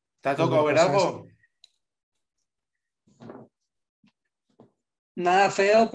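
A young man speaks with animation through an online call.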